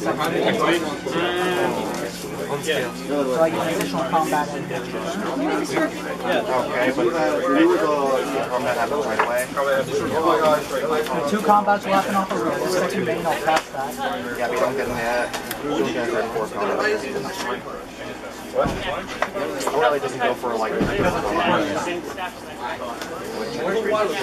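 Playing cards slap and slide softly on a tabletop.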